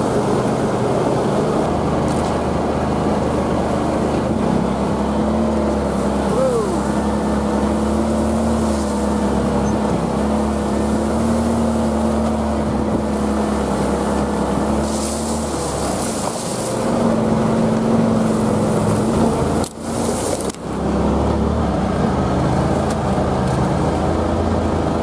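A vehicle engine hums steadily close by as it drives along.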